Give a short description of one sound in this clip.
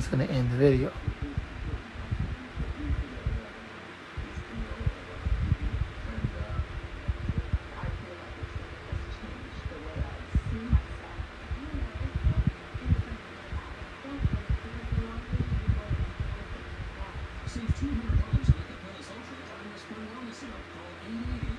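An electric fan whirs steadily.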